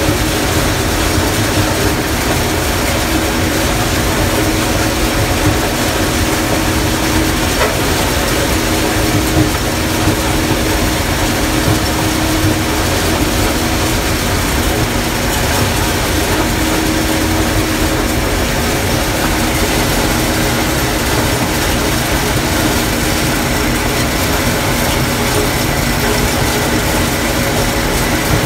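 A combine harvester's engine drones steadily from inside the cab.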